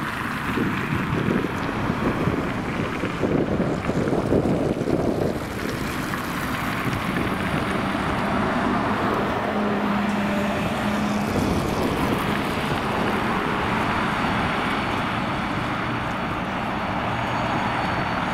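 Traffic drones steadily on the road.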